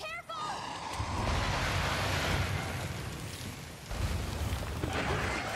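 Fiery explosions boom and crackle.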